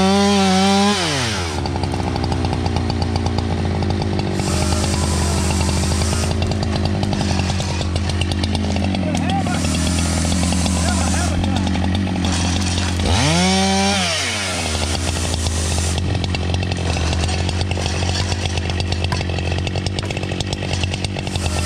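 A chainsaw idles with a low, steady putter.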